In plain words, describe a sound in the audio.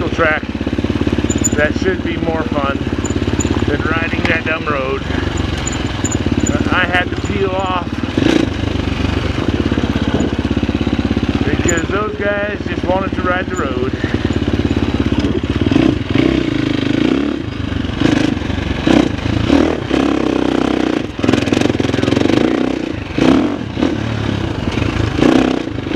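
A dirt bike engine hums steadily close by, revving now and then.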